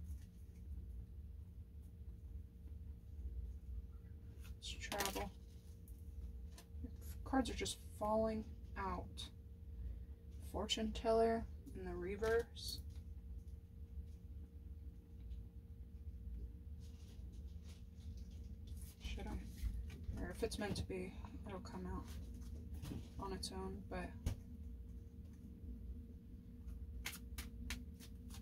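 Playing cards riffle and slap as they are shuffled.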